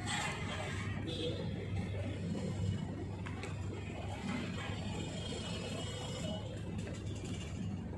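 A flag rope rattles against a metal pole.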